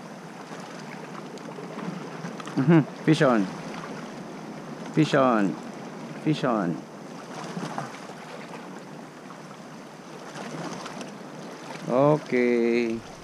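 Small waves wash and lap over rocks at the shore.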